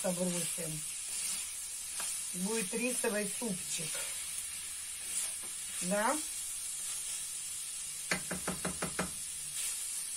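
Meat sizzles in a frying pan.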